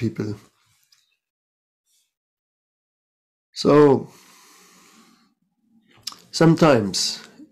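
An older man speaks calmly and slowly, close to a microphone.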